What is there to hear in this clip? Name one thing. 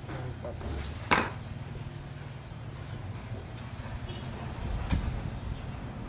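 Plastic parts click and knock as a young man handles a gun stock.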